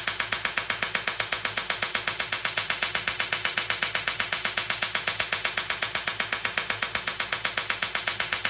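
A laser handpiece clicks in a rapid, steady series of pulses.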